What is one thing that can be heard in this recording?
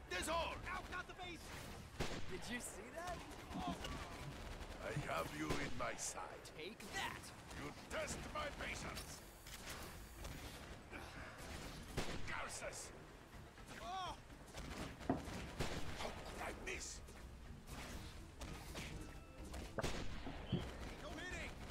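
Punches and blows land in a fast video game fight.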